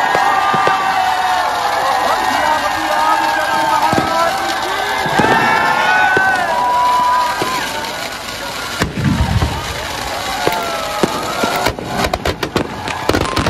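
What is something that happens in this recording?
Fireworks hiss and whistle with rising and falling shrieks.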